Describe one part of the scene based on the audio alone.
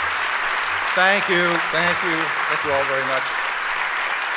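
An elderly man speaks cheerfully through a microphone and loudspeakers.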